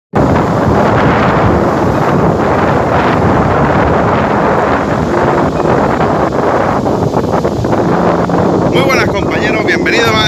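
Waves crash and roar onto a pebble shore close by.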